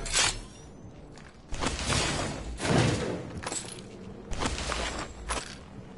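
Footsteps clatter on a metal grate floor.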